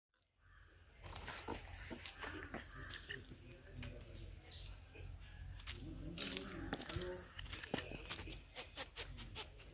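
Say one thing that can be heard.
A squirrel's claws scratch on tree bark.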